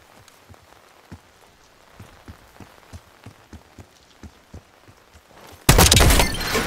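Footsteps tap quickly on a stone floor.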